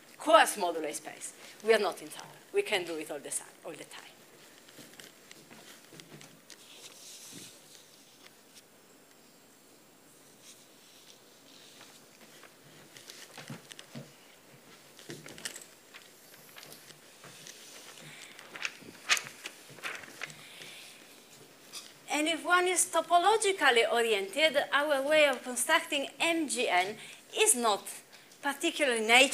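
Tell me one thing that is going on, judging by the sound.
A young woman lectures through a microphone.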